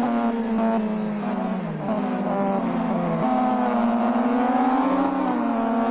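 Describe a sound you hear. A race car engine revs loudly, its pitch rising and dropping with gear shifts.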